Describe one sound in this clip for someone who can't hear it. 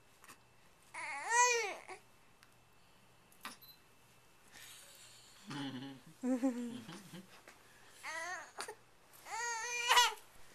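A baby squeals and coos in high, rising and falling bursts close by.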